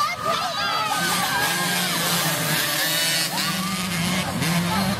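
A lone dirt bike engine revs past close by.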